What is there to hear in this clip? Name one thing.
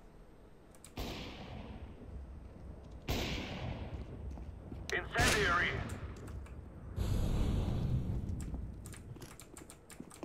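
A smoke grenade hisses as it spews smoke.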